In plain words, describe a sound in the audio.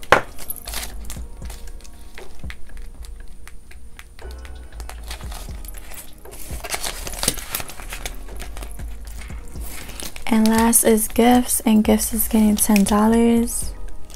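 A plastic zipper pouch crinkles as it is handled.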